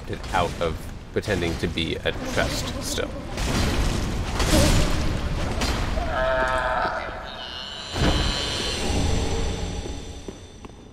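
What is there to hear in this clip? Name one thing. Sword blows clash and thud against flesh.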